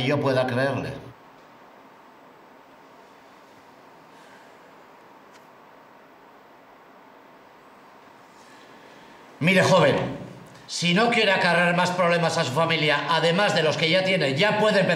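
An elderly man speaks slowly and gravely, close by.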